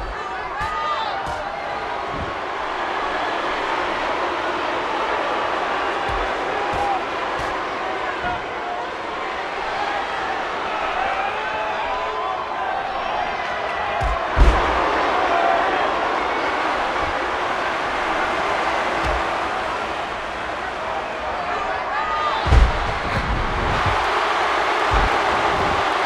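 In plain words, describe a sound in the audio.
Bodies slam heavily onto a wrestling mat.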